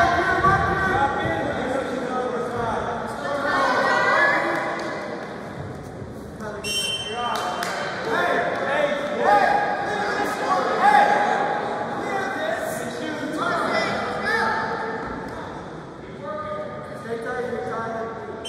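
Several men shout encouragement from close by.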